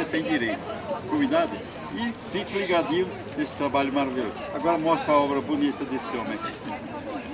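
An elderly man speaks with animation into a handheld microphone, close by.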